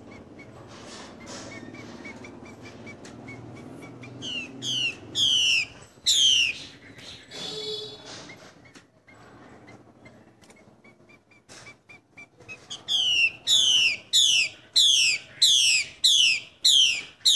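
A bird chirps with short high chips.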